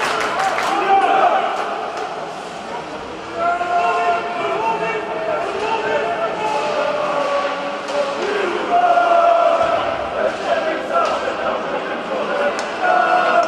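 Skates scrape and hiss across ice in a large echoing arena.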